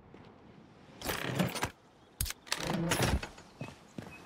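A young man talks close to a microphone in short bursts.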